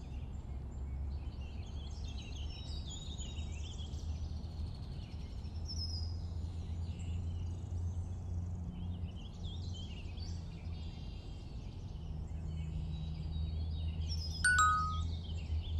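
A small boat moves across water with soft splashing.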